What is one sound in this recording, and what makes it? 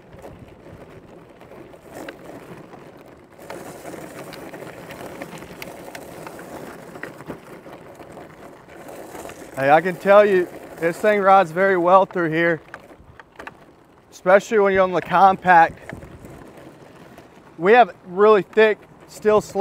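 Small tyres crunch over loose gravel.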